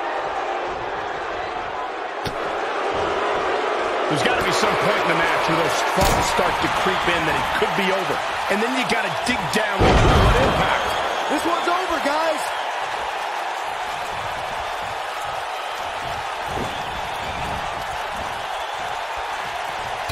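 A large crowd cheers and murmurs steadily throughout.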